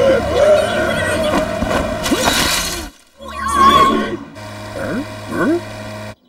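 A scooter engine buzzes along.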